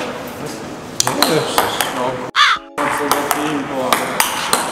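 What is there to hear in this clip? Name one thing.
A ping-pong ball taps on a table and paddle.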